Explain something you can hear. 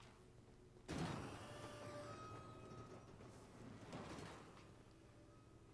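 A drawer slides open.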